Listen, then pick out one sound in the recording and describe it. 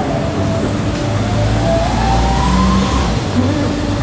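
A van drives slowly past.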